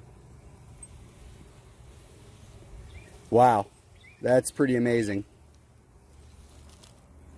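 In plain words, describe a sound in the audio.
Bees buzz steadily around a hive.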